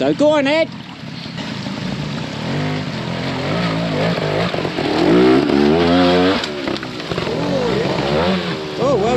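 A motorbike engine revs up and down close by.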